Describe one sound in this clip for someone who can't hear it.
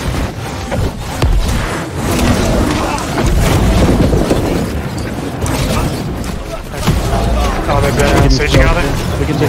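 Magic blasts whoosh and crackle in a fierce battle.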